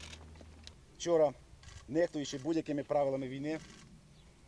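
A middle-aged man speaks firmly into microphones.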